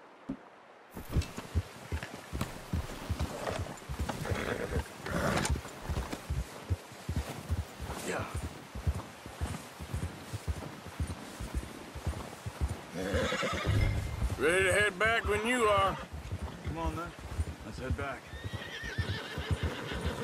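Horse hooves crunch steadily through deep snow.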